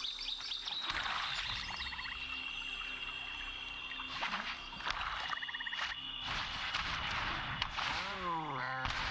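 Game cards whoosh and chime as they are played.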